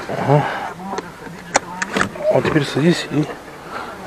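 A seatbelt buckle clicks into place.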